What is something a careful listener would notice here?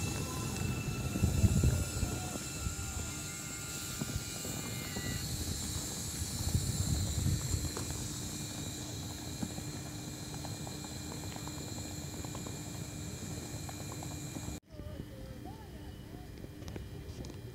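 A train rumbles and clatters past close by on the rails.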